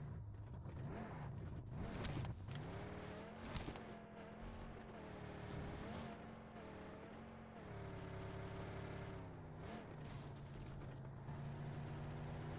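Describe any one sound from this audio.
A car engine revs and hums steadily.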